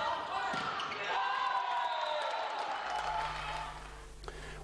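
A crowd cheers loudly in an echoing sports hall.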